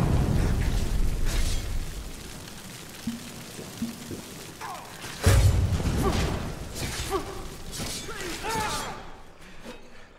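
A man grunts and shouts while fighting.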